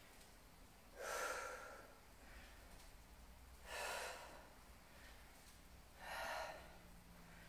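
A woman exhales sharply with each squat.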